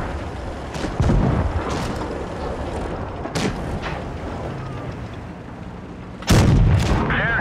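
A tank cannon fires with loud booms.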